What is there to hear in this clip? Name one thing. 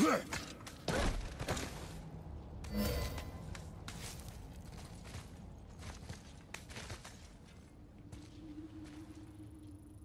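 Hands grip and scrape against rock.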